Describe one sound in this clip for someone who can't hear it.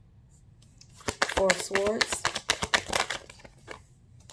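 Playing cards riffle and flick together as they are shuffled by hand.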